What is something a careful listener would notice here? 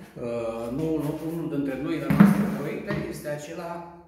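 A plastic chair is set down on the floor.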